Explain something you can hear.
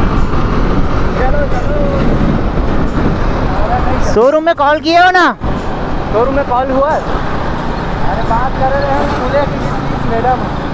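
A young man shouts over the wind from a motorcycle riding alongside.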